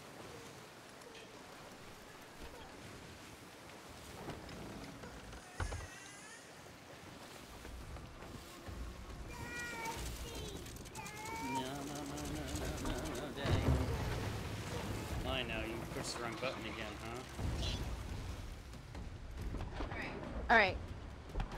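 Rough sea waves churn and splash against a wooden ship.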